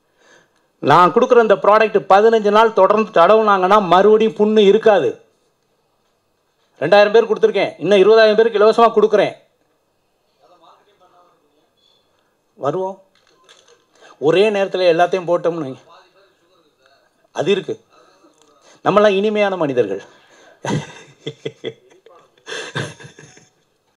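A man speaks with animation into a microphone, heard through loudspeakers, with pauses.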